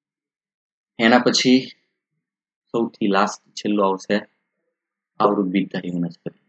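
A man speaks calmly and clearly into a close microphone, in short phrases with pauses.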